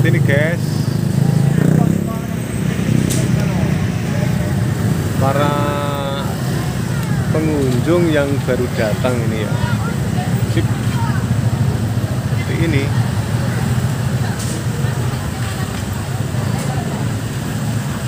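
A crowd chatters outdoors on a busy street.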